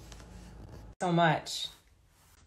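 A young woman speaks briefly and close up.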